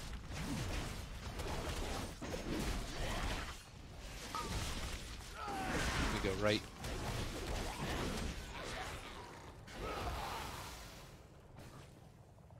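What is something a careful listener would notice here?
Magic spells whoosh and crackle in a noisy fight.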